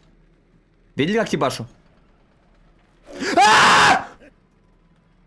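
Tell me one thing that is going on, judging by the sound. A young man exclaims loudly into a microphone.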